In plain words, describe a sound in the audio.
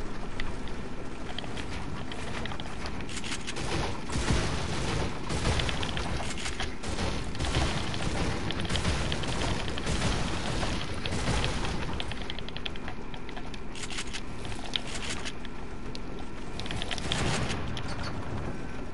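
Wooden wall panels knock and clatter as they snap into place.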